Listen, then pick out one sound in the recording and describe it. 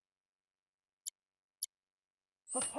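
Short electronic menu clicks sound twice.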